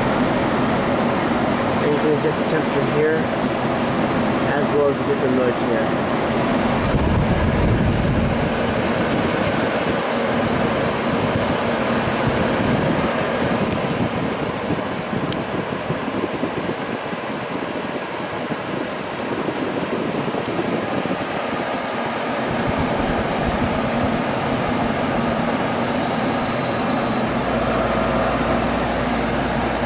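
An air conditioner hums and blows air steadily.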